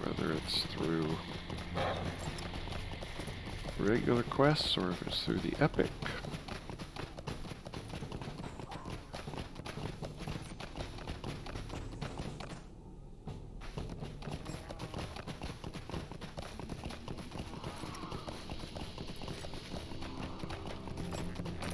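A horse's hooves thud steadily as it trots over grass.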